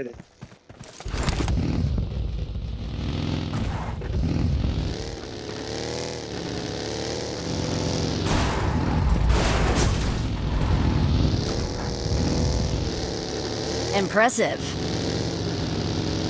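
A buggy engine hums and revs while driving.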